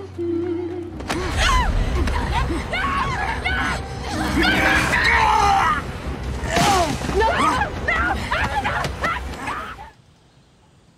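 A young woman screams and cries out in distress.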